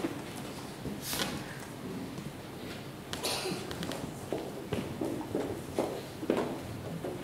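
A piano plays along with a choir.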